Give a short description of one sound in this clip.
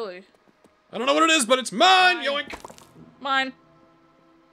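A young man exclaims with excitement.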